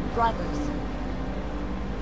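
A young woman speaks with determination.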